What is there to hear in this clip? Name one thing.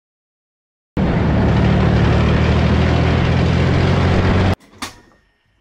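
An armoured vehicle's engine rumbles loudly as it drives.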